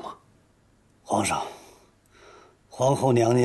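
An elderly man answers calmly.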